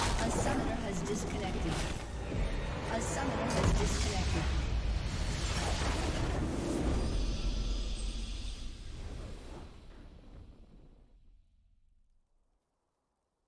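Video game spell effects whoosh and crackle amid loud booming blasts.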